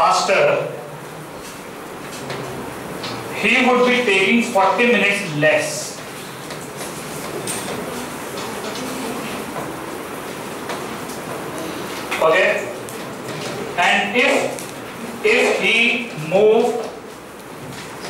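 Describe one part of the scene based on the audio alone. A man speaks calmly through a headset microphone, in short phrases with pauses.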